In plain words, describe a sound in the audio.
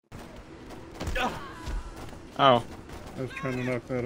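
Fists thump in blows during a scuffle.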